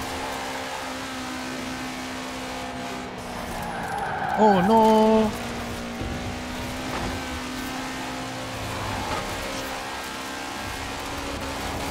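A car engine hums steadily at high speed.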